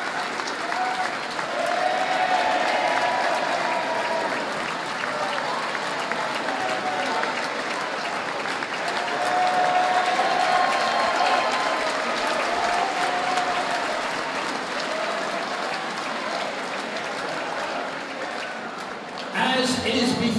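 People clap their hands in applause.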